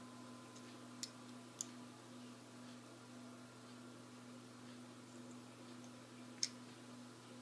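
Pliers click sharply as they snip a thin wire.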